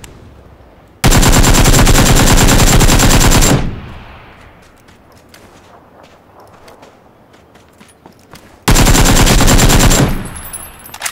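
A rifle fires rapid, loud bursts close by.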